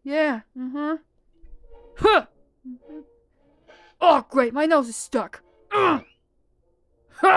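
High-pitched cartoon male voices sing in bursts.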